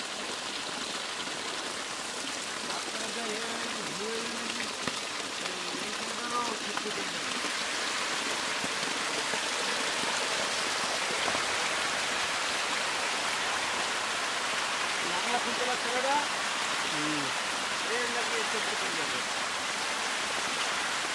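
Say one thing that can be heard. Fish splash and thrash in shallow water.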